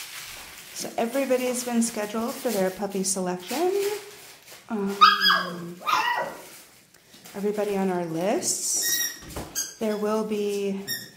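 Puppies whine and yelp.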